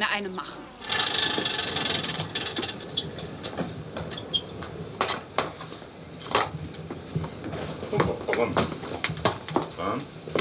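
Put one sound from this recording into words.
Fire hisses and crackles in a forge.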